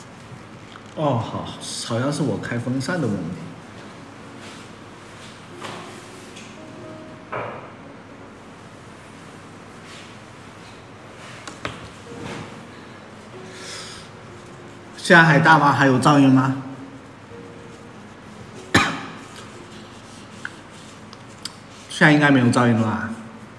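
A young man talks casually and close to a microphone, with pauses.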